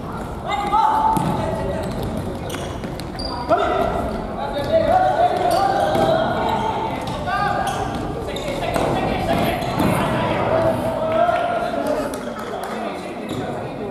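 Young players shout to one another in a large echoing hall.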